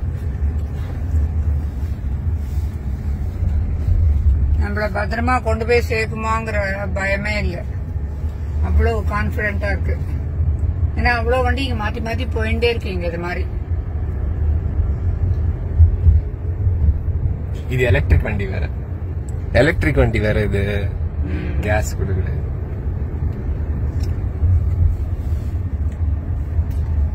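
A car's tyres rumble steadily on the road from inside the cabin.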